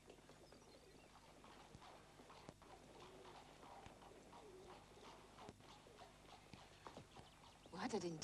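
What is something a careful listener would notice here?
A young woman speaks quietly and tensely, close by.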